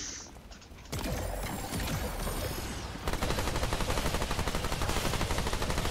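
A pistol fires shots in quick succession.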